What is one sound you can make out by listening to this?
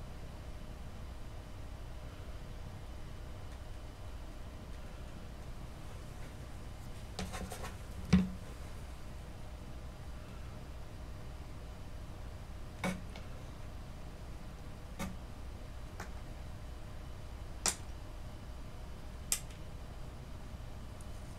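Fingers press and rub softly on a clay model.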